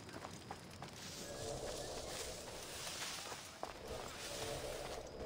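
Leaves and grass rustle softly.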